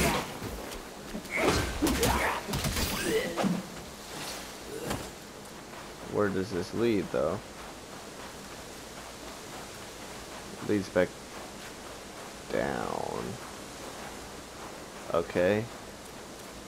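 A wooden staff whooshes through the air and strikes in quick blows.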